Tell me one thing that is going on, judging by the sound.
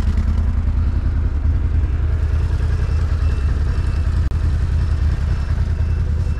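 A 1000 cc quad bike engine roars at high revs.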